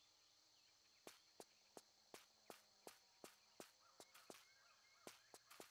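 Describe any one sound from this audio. Footsteps tap steadily on the ground.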